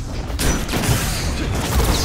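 A blast roars and crackles.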